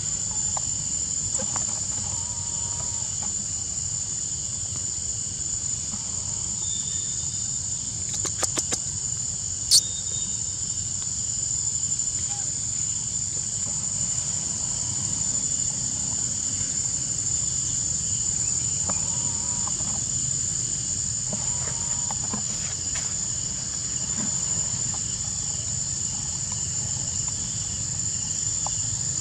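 A monkey makes short soft calls nearby.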